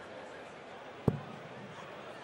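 A dart thuds into a dartboard.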